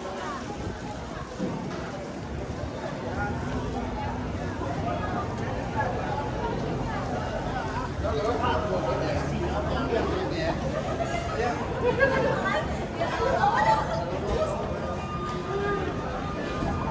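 A crowd of men and women chatters nearby in an echoing space.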